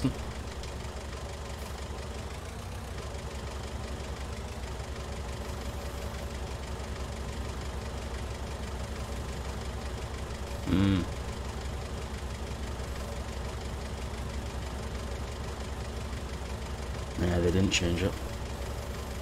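A forklift engine hums steadily at low speed.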